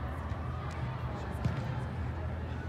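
A soccer ball is kicked with a thud.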